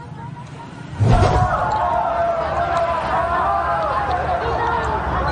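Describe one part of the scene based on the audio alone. A crowd of people chatter loudly outdoors.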